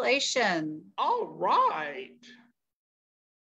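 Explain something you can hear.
A man speaks briefly over an online call.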